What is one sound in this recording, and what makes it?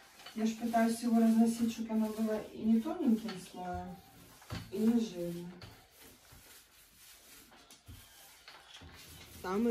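A paint roller rolls softly over a wall.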